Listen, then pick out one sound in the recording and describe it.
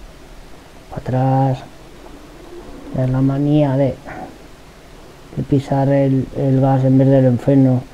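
A man speaks loudly in short bursts.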